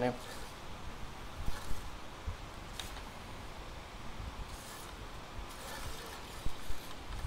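A hand rubs along a fishing rod.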